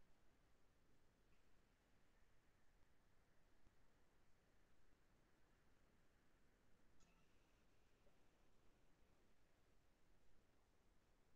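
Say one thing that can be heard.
Paper rustles and crinkles softly between fingers.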